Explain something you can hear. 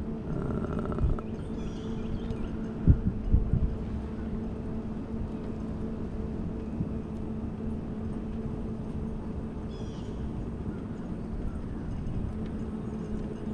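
Small tyres hum and rumble on rough pavement.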